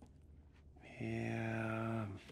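A man holds a long, steady vocal note close by.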